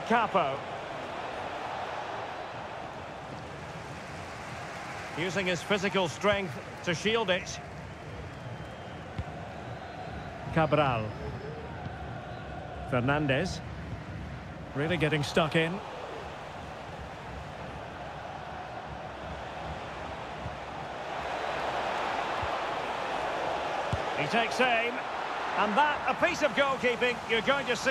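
A stadium crowd roars, swelling as an attack nears the goal.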